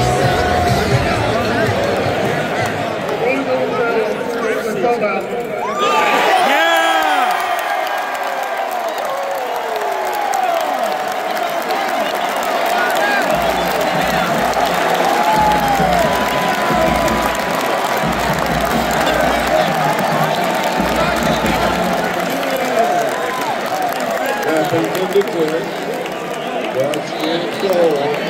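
Many people in a stadium crowd whistle and shout.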